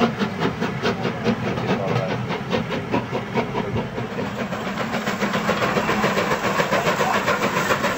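A model train clicks along its track.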